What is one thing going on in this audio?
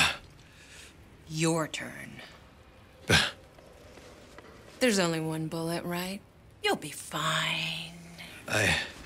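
A woman speaks calmly in reply.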